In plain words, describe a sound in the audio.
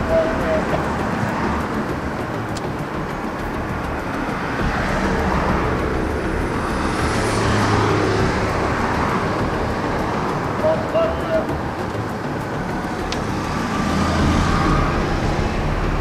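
Traffic hums steadily along a road outdoors.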